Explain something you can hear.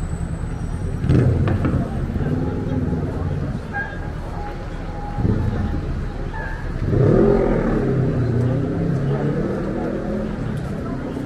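Men and women talk in passing outdoors.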